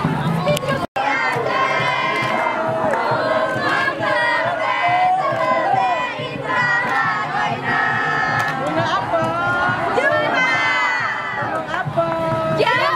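A group of young men and women sing loudly together, close by, outdoors.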